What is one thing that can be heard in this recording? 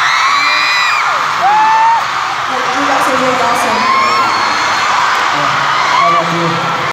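A large crowd of young women screams and cheers loudly in a big echoing hall.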